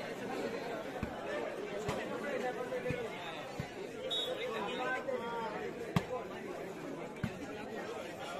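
A ball bounces on concrete.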